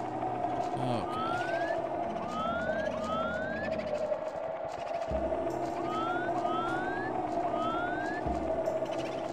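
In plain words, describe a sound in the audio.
Short rising chirps of a game character jumping sound again and again.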